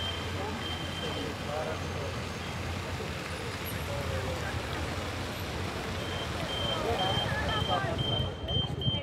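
A fountain splashes steadily outdoors.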